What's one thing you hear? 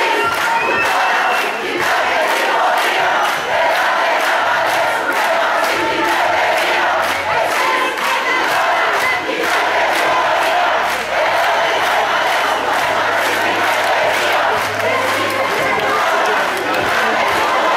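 A large crowd of men and women chants loudly outdoors.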